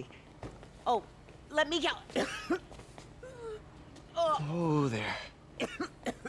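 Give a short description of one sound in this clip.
An older woman groans and cries out in pain, close by.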